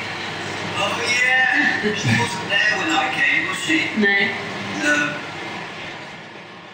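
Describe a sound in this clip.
A young woman laughs.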